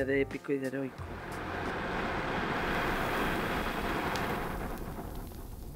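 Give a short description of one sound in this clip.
A man draws on a cigarette with a soft crackling hiss.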